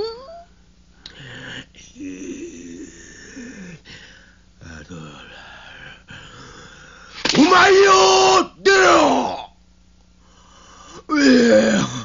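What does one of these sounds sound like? A man speaks in a loud, strained, exaggerated voice, with rising cries.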